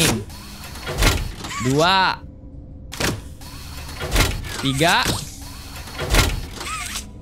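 A mechanical grabber shoots out and clanks against metal.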